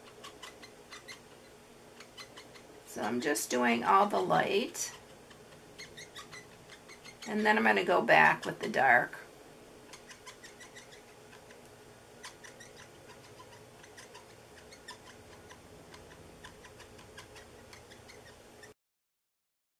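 A marker scratches softly across paper.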